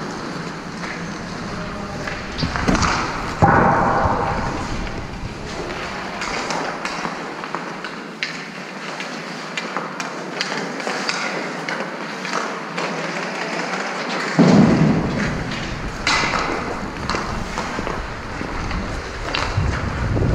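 Hockey sticks clack against the ice.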